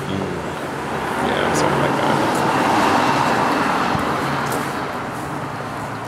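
A vehicle drives past on a street, rising and fading.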